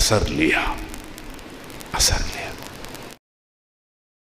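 A middle-aged man speaks firmly through a microphone.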